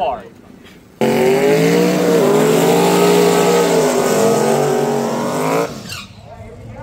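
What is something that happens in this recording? A race car engine roars loudly during a burnout.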